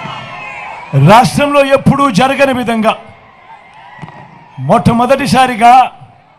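A man speaks forcefully into a microphone, heard loudly through loudspeakers.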